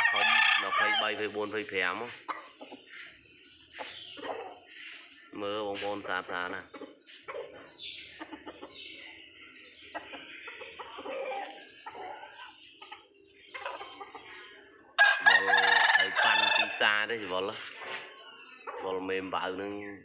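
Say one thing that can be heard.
A rooster crows loudly nearby, several times.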